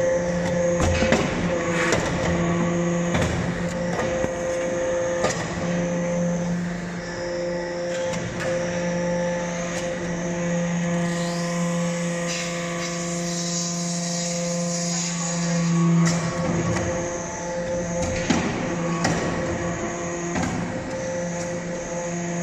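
A hydraulic press hums steadily.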